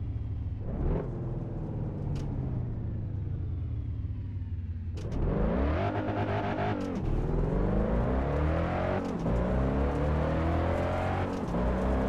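A car engine idles and then revs hard, rising in pitch through several gear changes.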